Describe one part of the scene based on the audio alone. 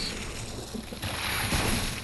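A large creature screeches and clatters nearby.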